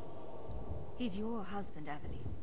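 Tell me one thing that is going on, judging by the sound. A young woman speaks softly and earnestly.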